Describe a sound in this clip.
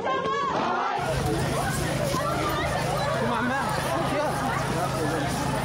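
A crowd of people shouts and screams outdoors.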